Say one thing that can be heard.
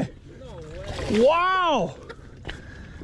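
A large fish thrashes and splashes in shallow water.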